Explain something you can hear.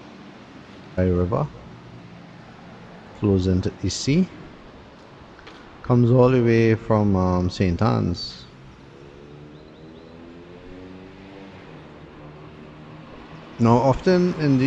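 A man speaks calmly close to the microphone, in short bursts.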